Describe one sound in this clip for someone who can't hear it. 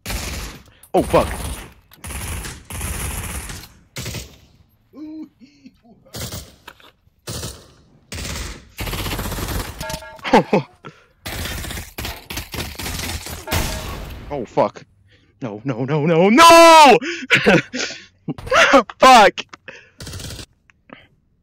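Rapid gunshots fire in sharp bursts.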